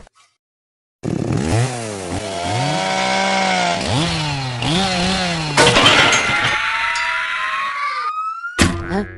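A chainsaw revs up and down.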